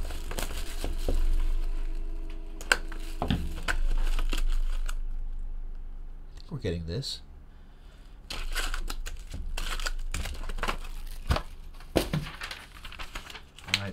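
Cardboard and plastic wrappers rustle and crinkle as a box is handled.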